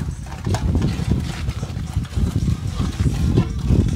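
A trowel scrapes and taps on concrete blocks.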